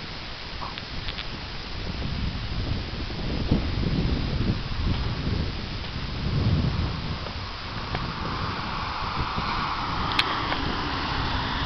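Wind buffets loudly in gusts outdoors.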